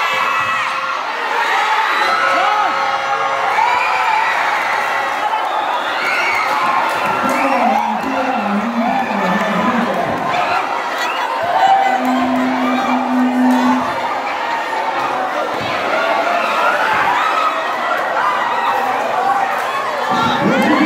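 A crowd of spectators chatters and shouts loudly throughout.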